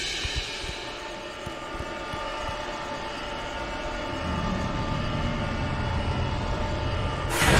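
A crackling beam of energy hums and roars steadily.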